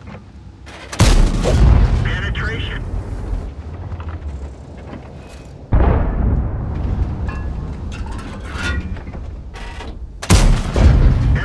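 A tank cannon fires with loud booming blasts.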